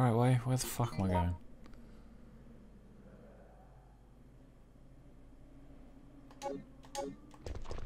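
A game menu clicks as options are selected.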